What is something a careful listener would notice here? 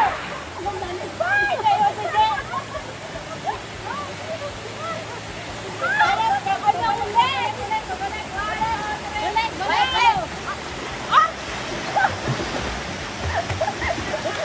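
Young women shout and laugh excitedly nearby, outdoors.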